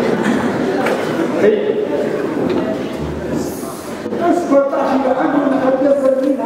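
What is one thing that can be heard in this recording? A man speaks loudly in a large echoing hall.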